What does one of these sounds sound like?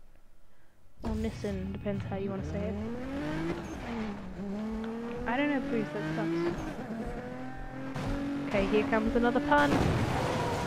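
A car engine revs and roars as it accelerates through the gears.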